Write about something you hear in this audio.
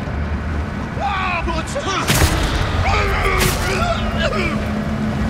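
A man grunts and shouts while fighting.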